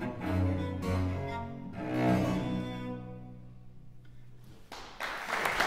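A cello plays slow notes in a large hall.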